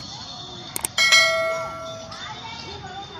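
A peacock gives a loud, ringing call nearby.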